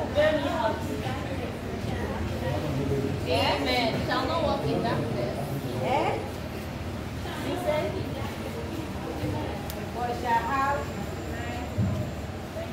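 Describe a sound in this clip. A woman speaks with animation through a microphone in a room with some echo.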